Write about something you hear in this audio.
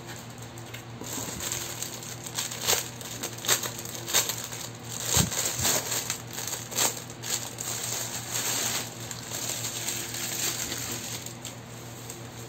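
A plastic bag rustles and crinkles as it is handled.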